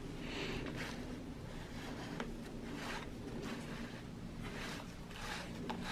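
A cardboard box rustles as a hand turns it.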